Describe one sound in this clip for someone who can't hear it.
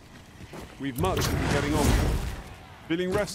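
A burst of magic fire roars and crackles.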